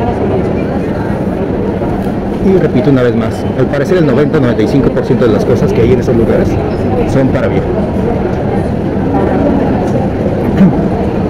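An escalator hums steadily.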